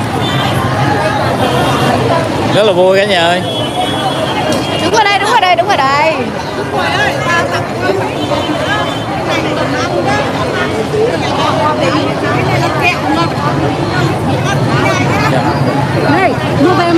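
A lively crowd of women chatters and calls out close by, outdoors.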